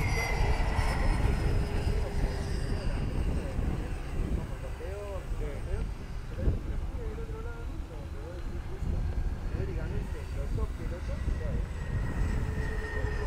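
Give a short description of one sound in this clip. A model plane's electric motor whines overhead, its pitch rising and falling as it passes.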